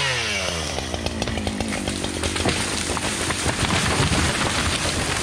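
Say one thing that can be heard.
A tree trunk cracks and splinters as it gives way.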